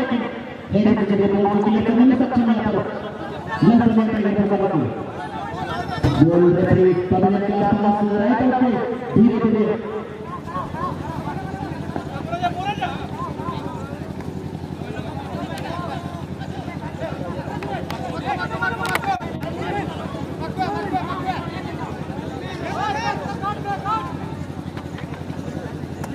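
A large crowd murmurs and cheers outdoors.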